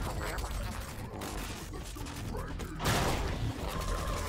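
Blades slash with sharp swishes.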